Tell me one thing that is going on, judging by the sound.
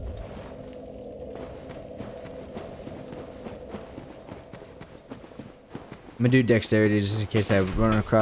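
Footsteps thud on stone as a figure runs.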